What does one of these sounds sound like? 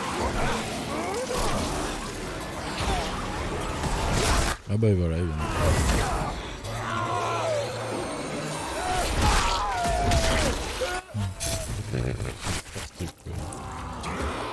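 Wet flesh squelches and tears.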